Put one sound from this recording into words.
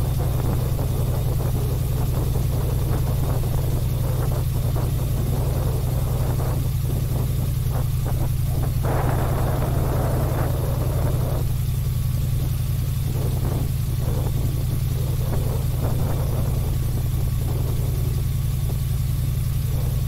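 An airboat engine and propeller roar loudly and steadily.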